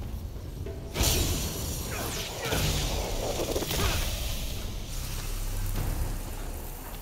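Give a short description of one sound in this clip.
A magic blast explodes with a deep rumble.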